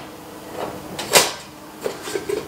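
A metal pan knocks down onto a stovetop.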